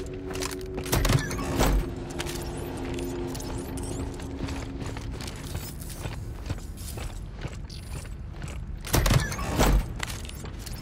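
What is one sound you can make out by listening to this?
A metal ammo case snaps open with a loud clank.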